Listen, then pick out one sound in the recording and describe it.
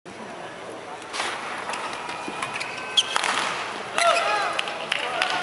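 A crowd cheers and murmurs in a large echoing hall.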